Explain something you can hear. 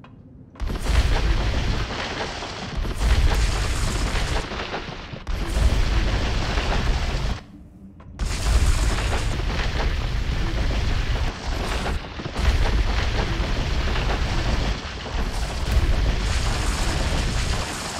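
A mining laser drills into rock with a loud, rumbling hiss.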